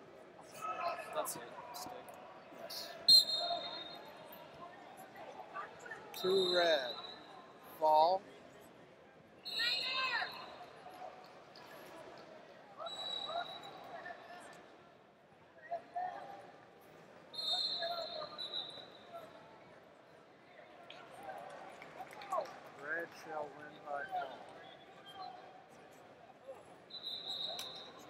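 Men and women talk and call out in a large echoing hall.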